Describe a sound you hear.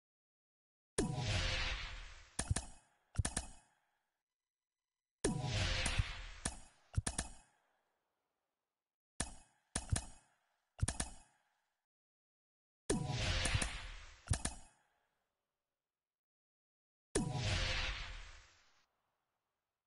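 Short swooshing game menu sounds play in bursts, fading away.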